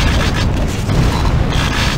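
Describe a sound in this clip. A blast goes off with a loud boom.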